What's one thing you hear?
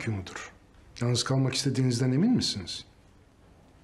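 A middle-aged man asks a question in a low, stern voice.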